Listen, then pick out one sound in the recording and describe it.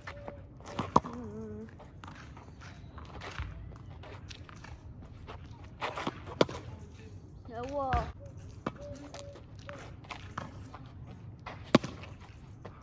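A tennis racket sharply strikes a ball.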